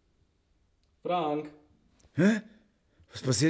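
A man groans and mumbles sleepily close by.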